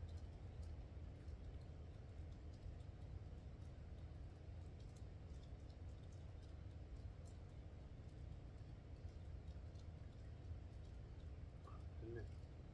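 Fingers rustle and scratch softly close by.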